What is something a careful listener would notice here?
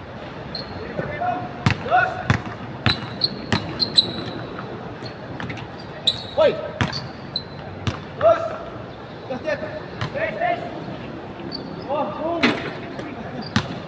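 Young men call out to each other during a game.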